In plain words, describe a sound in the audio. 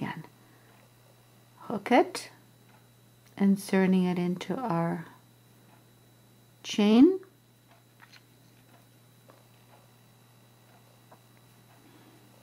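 A crochet hook softly rubs and ticks as yarn is pulled through loops.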